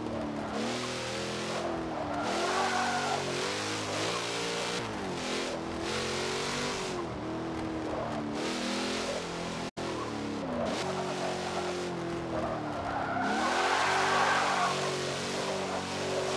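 A car engine revs up and down, rising and falling in pitch.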